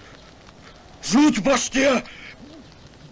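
A younger man speaks urgently, close by.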